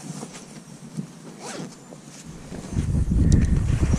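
A bag zip rustles and is fastened.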